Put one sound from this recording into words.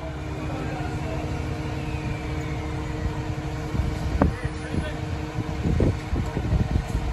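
A fire truck engine idles steadily nearby.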